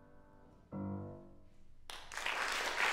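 A piano plays a final chord that rings out.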